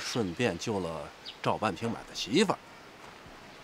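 A middle-aged man speaks questioningly, close by.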